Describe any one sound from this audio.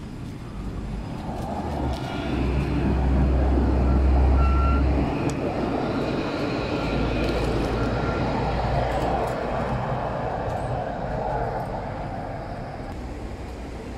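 An electric tram rolls past on rails with a rising and fading hum.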